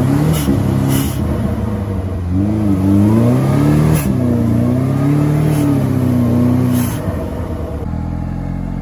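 A truck engine revs hard, rising and falling in pitch.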